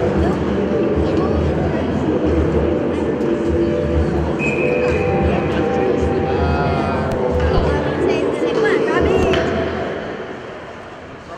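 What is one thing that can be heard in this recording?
Skates scrape and swish across the ice.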